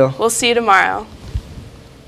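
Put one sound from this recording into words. A young woman speaks cheerfully close to a microphone.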